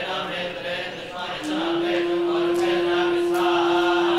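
Men chant together in unison.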